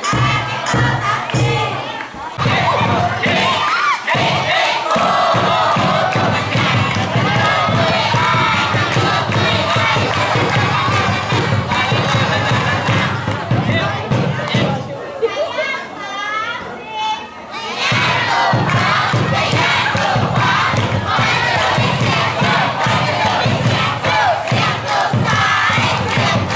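Upbeat music with a heavy beat plays loudly over loudspeakers.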